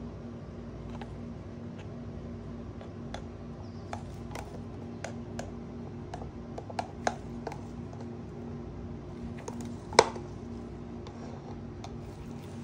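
A stick scrapes and taps against a plastic cup.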